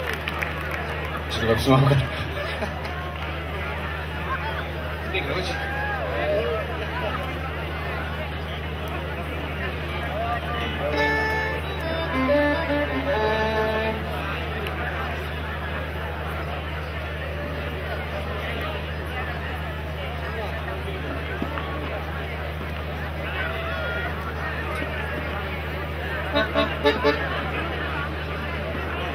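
An accordion plays softly.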